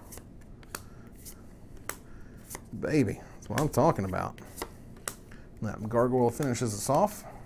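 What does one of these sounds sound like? Playing cards flick and tap as they are handled.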